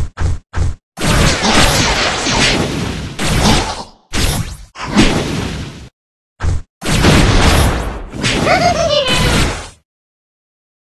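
Punches and energy blasts thud and crash in a video game fight.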